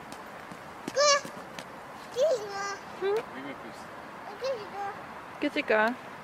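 A toddler babbles and squeals in high short calls.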